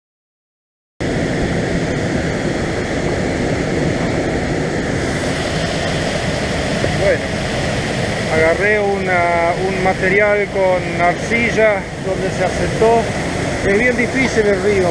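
A stream rushes and splashes over rocks nearby.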